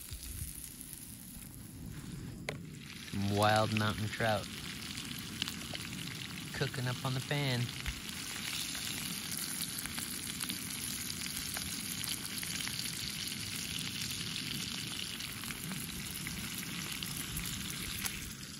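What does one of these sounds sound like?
Fish sizzles and crackles as it fries in hot oil.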